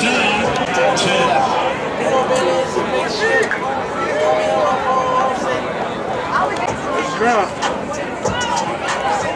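A crowd chatters and calls out outdoors.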